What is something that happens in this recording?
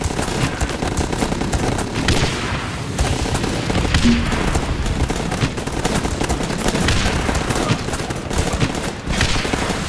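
Rapid gunfire rattles without a break.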